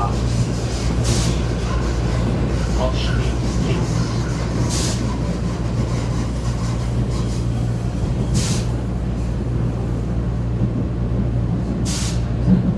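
A subway train rumbles steadily along the tracks.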